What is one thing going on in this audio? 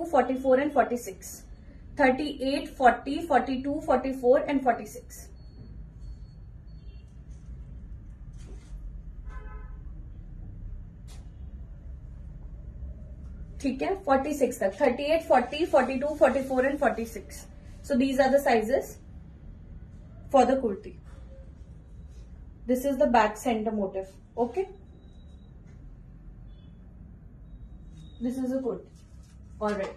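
A young woman speaks close by with animation, in short bursts.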